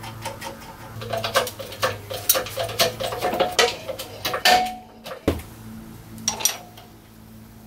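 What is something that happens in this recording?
Metal parts clank and click as a spring compressor is worked.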